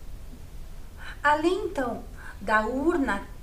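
A woman speaks calmly and clearly into a microphone, as if presenting.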